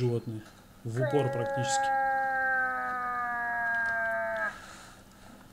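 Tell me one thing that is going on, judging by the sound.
A hunting call is blown with a long, wavering bleating note.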